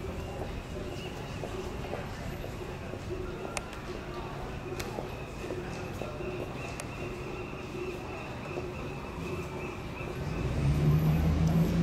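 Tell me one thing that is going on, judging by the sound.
City traffic hums steadily in the distance outdoors.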